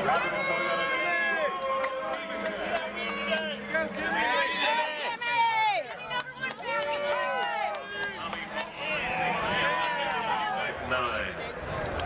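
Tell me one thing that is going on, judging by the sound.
A crowd of fans shouts and cheers excitedly nearby.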